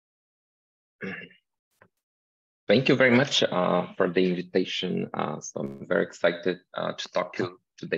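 A young man speaks calmly through an online call.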